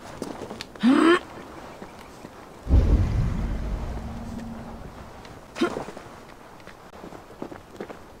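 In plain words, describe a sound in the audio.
Footsteps scrape softly over rock.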